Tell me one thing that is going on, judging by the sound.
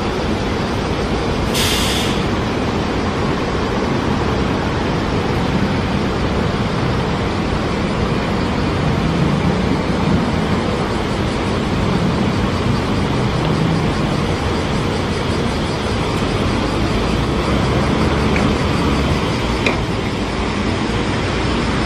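A bus engine rumbles as the bus pulls away and drives off.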